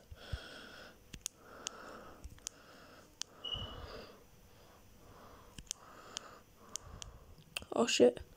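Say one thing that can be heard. Short electronic pops sound as small pellets are gobbled up in a game.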